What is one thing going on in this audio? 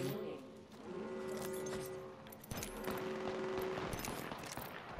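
Game menu items click and chime.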